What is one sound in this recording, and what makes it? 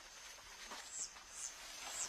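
Leaves rustle close by in dense undergrowth.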